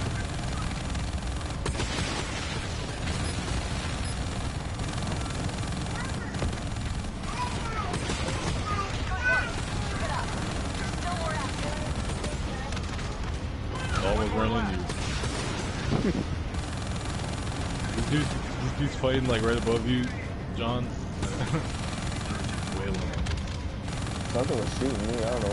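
A video game aircraft engine rumbles low.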